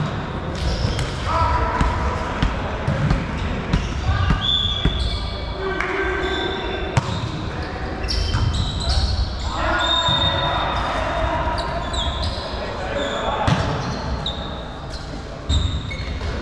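Young women call out to each other on the court.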